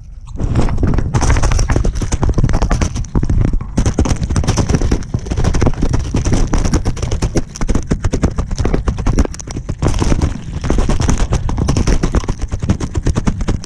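Ducks peck and dabble noisily in feed right against the microphone.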